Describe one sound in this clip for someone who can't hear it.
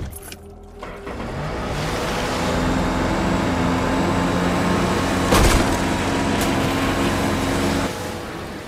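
A jet ski engine starts and runs with a steady roar.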